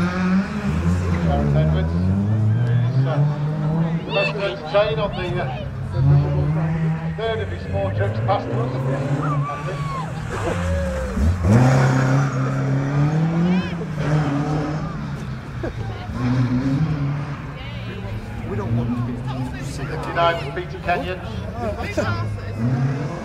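A rally car engine roars and revs as the car races past.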